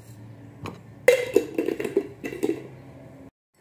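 A glass jar clinks and rattles.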